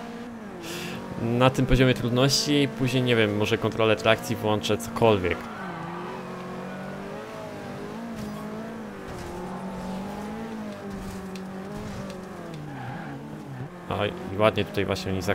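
A racing car engine roars and changes pitch as it speeds up and slows down.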